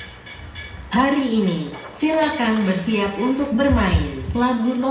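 A young boy sings a melody close by.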